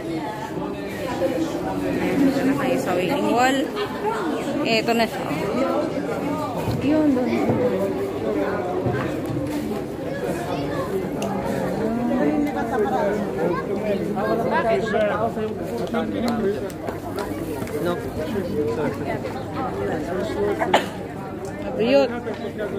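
A crowd murmurs and chatters outdoors.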